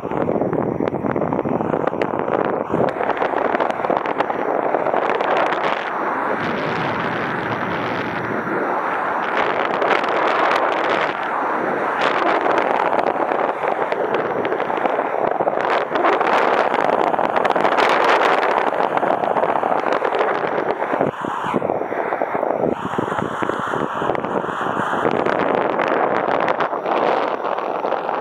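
Strong wind rushes loudly and steadily past a microphone, outdoors in the air.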